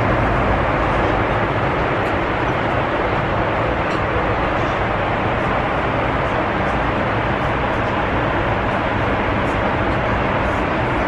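A steady jet airliner cabin roar fills the air in flight.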